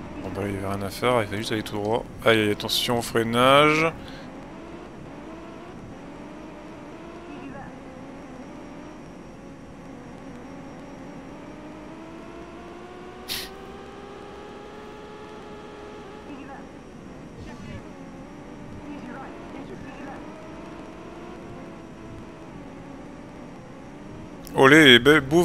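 A racing car engine hums and rises and falls in pitch as the car speeds along.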